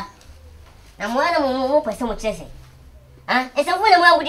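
A young boy speaks nearby.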